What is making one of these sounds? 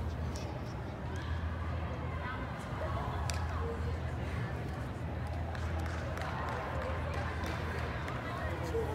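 Young women chatter and call out nearby in a large echoing hall.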